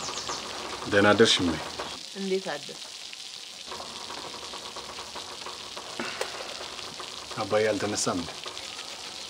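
A man speaks quietly and calmly nearby.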